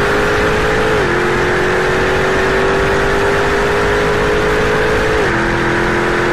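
A car engine's pitch drops suddenly at each upshift while accelerating.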